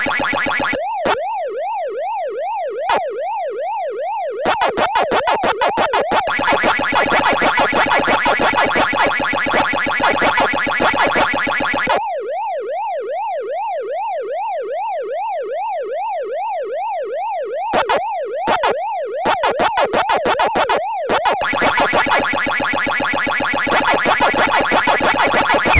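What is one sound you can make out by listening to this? Quick electronic chomping blips repeat in bursts.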